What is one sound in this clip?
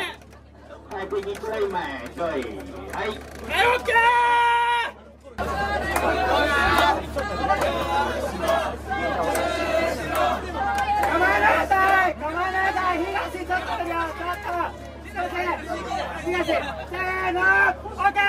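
A crowd of men chant and shout loudly outdoors.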